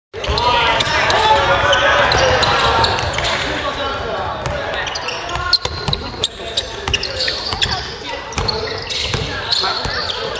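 Sneakers squeak sharply on a hard floor.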